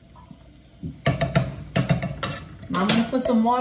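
A spoon scrapes and clinks against a metal bowl.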